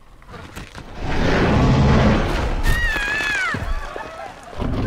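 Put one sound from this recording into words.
A huge dinosaur roars loudly.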